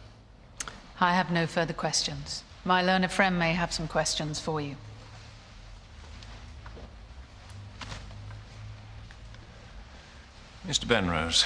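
A woman speaks firmly and clearly.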